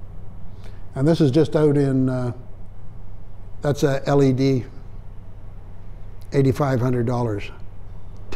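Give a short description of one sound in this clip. A man speaks calmly close by, in short phrases with pauses.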